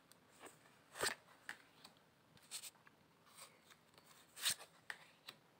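Round cards tap softly as they are set down on a wooden table.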